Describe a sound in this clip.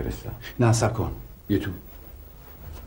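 A middle-aged man speaks sharply and firmly nearby.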